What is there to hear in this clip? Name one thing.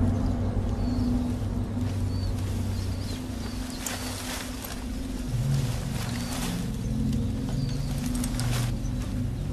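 Footsteps crunch on leaves and twigs in a forest.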